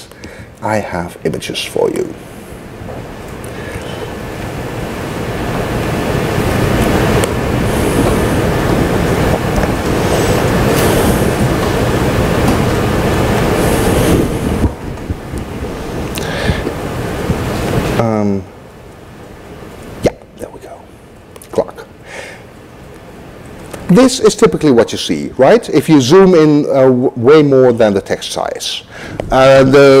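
A man speaks calmly through a microphone in a room.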